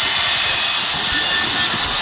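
Metal grinds against a steel door.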